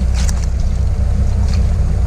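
Boots squelch in mud.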